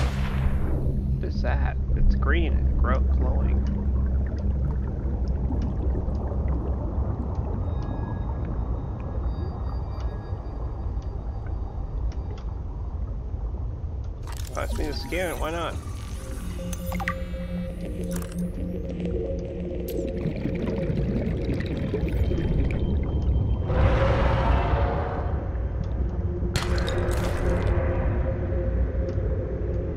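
Deep water rumbles and hums steadily all around.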